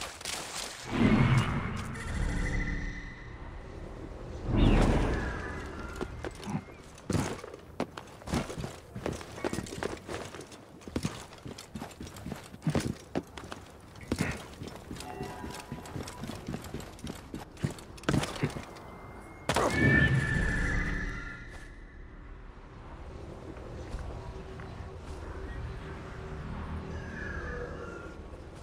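An eagle screeches.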